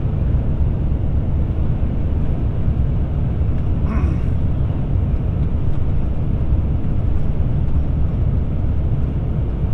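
Tyres roll steadily on a smooth road with a low rumble.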